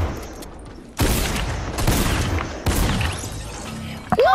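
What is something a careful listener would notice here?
Rapid gunshots crack in a video game.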